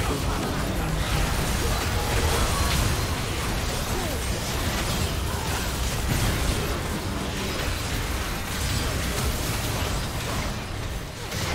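Spell effects whoosh and crackle in a busy video game battle.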